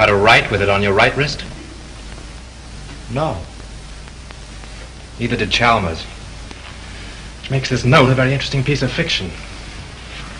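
A man speaks in short, firm bursts.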